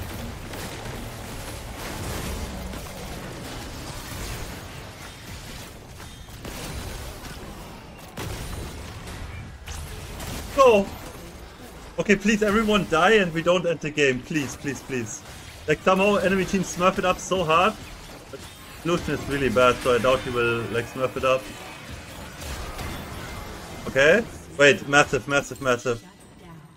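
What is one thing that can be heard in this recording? Video game battle effects clash and crackle throughout.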